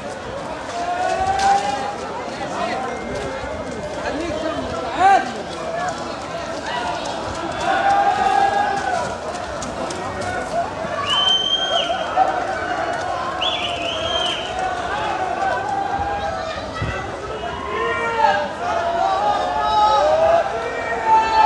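Young people shriek and squeal with excitement nearby.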